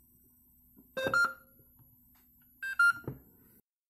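A mobile radio transceiver beeps as its buttons are pressed.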